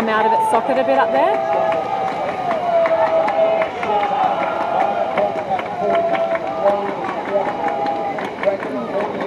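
Swimmers splash and churn the water.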